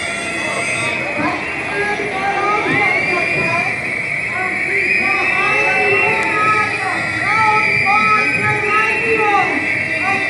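A large crowd of men and women shouts and chants outdoors at a distance.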